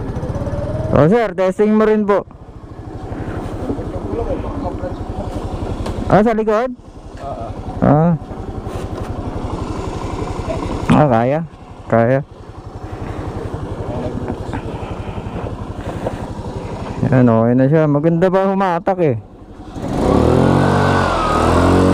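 A scooter engine revs up and down in short bursts.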